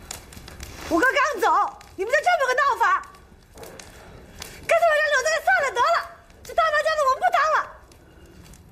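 A young woman speaks upset, close by, her voice rising into a tearful cry.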